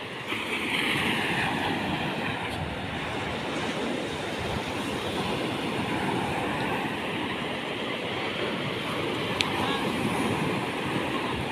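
Waves wash steadily onto the shore.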